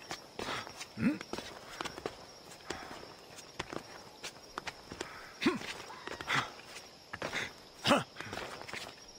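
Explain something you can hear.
A man grunts with effort while climbing.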